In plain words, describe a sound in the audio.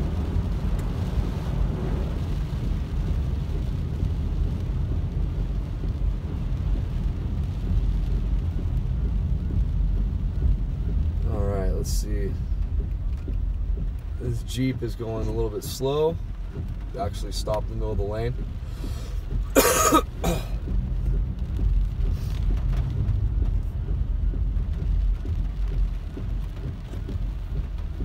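A car engine hums and tyres hiss on a wet road.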